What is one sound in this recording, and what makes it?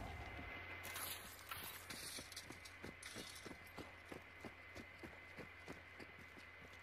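Footsteps thud steadily on the ground.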